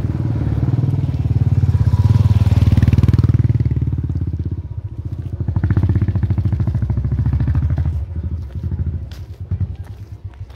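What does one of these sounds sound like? A motorbike engine rumbles close by and then fades away.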